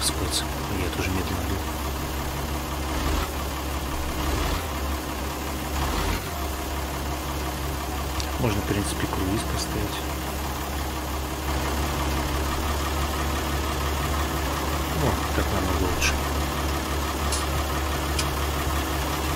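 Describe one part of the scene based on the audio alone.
A young man talks casually into a microphone.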